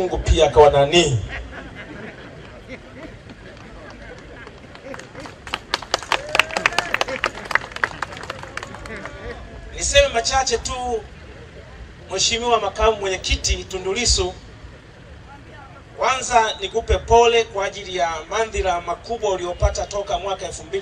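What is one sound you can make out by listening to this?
A man preaches forcefully into a microphone, heard through loudspeakers outdoors.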